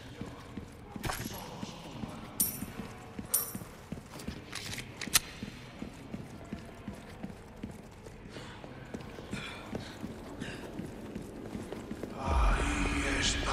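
Footsteps hurry across a stone floor.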